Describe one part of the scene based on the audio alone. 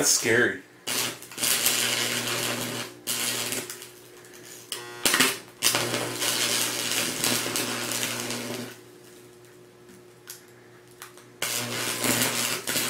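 An electric arc crackles and buzzes loudly in short bursts.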